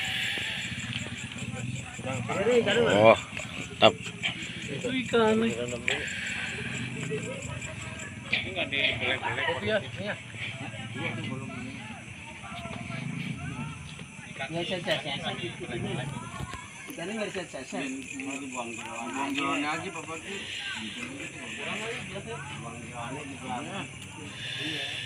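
Several young men talk and laugh loudly, close by, outdoors at night.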